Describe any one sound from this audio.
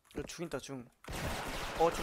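Rifle gunfire cracks in short bursts.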